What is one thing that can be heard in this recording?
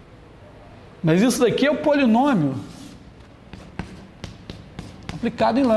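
A middle-aged man lectures with animation.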